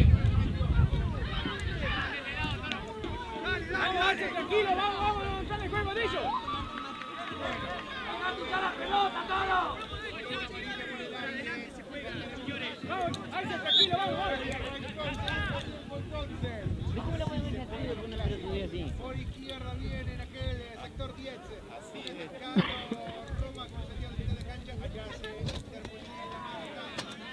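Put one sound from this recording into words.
Young men shout to each other while playing.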